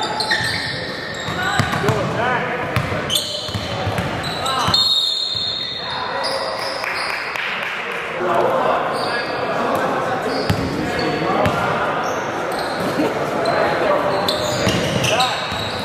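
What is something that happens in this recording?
A basketball bounces on the wooden floor.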